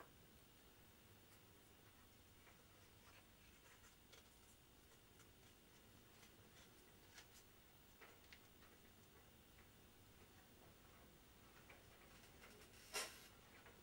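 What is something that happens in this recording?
Stiff card rustles and taps softly as hands handle it.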